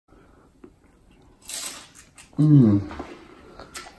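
A man crunches on a crisp snack up close.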